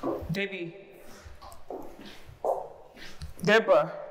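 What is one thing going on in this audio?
Heels click on stairs.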